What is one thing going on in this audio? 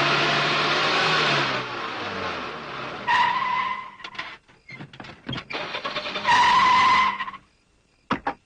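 A car engine revs hard as tyres spin and skid on dirt.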